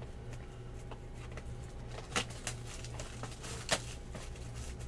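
Plastic wrapping crinkles as a pack is torn open.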